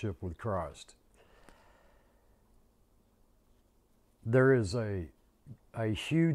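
An older man speaks calmly and close to a microphone, with pauses.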